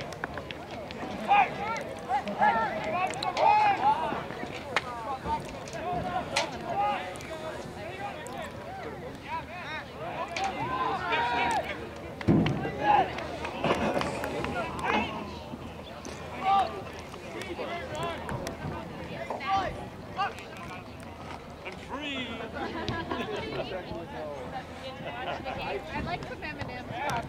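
A crowd of men and women shouts and cheers outdoors.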